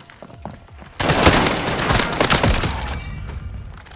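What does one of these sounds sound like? An assault rifle fires a burst of shots indoors.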